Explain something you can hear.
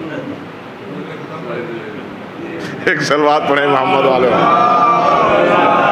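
An older man laughs softly.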